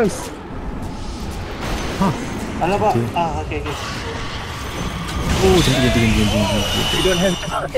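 Fantasy battle sounds of spells and blows clash and whoosh.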